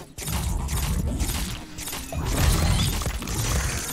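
A cartoonish blast booms from a video game.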